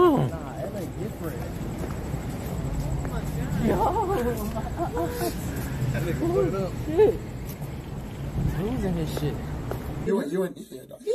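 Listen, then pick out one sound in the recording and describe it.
A young man talks with animation outdoors.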